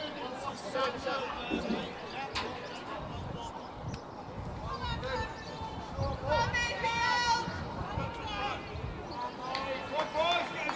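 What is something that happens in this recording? Young men shout to each other outdoors, some close and some farther away.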